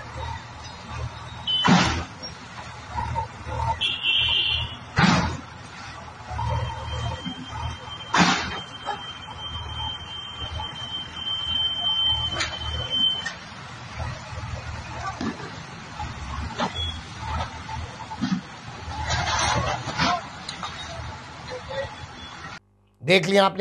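A bulldozer engine rumbles.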